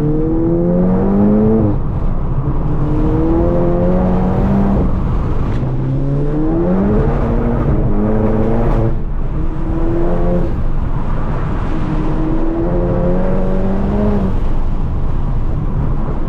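Tyres rumble on the road at speed.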